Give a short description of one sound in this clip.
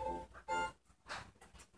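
Chiming video game sound effects play through a television speaker.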